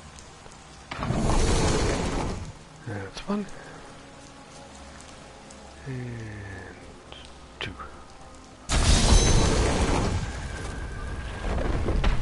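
Weapons clash and creatures shriek in a loud fight.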